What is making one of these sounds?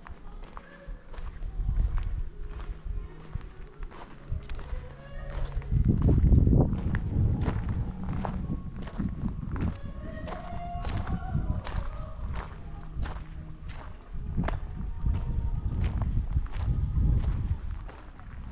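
Footsteps crunch steadily on gravel outdoors.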